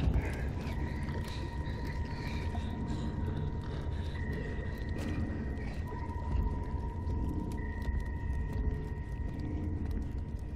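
Light footsteps patter on a tiled floor.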